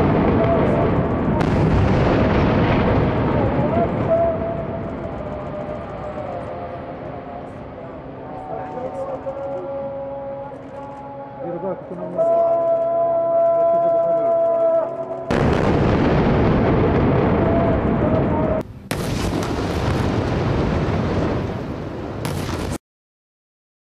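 Heavy explosions boom and rumble across a city.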